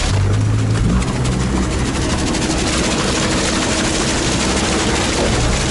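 Water splashes and rushes close by.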